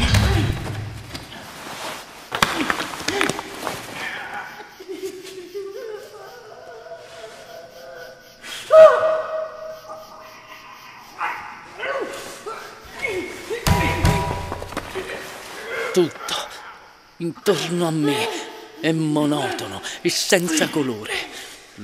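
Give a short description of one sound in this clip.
A man grunts and groans with strain.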